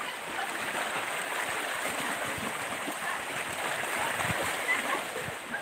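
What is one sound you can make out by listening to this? Small waves lap and splash against rocks at the shore.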